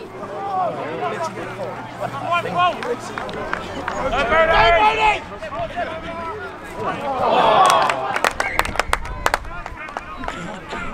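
Young men shout to one another across an open field.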